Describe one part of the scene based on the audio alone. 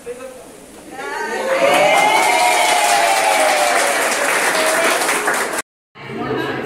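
A group of women clap their hands.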